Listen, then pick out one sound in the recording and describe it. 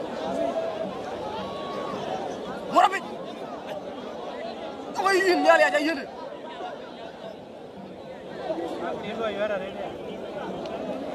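A large outdoor crowd chatters and cheers throughout.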